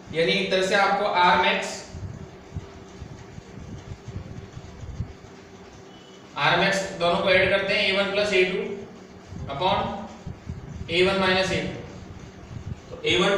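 A young man explains calmly, close by.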